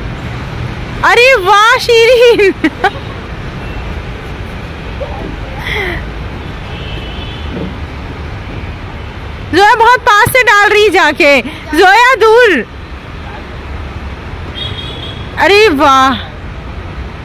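A young girl shouts loudly and excitedly nearby.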